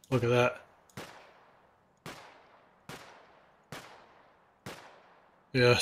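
Gunshots fire one after another, each ringing out briefly.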